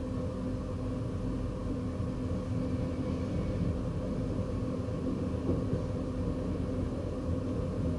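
Another train rushes past close by.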